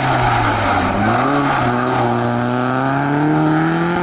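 Tyres skid and crunch on loose gravel.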